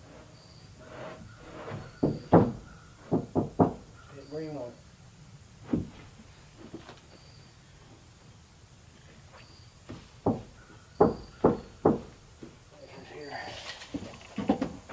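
Wooden boards knock and thud sharply.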